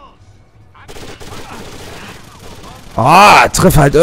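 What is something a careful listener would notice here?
Rapid gunfire bursts out close by.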